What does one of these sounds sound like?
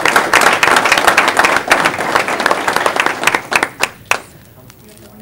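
A crowd claps and applauds in a room, then the clapping dies away.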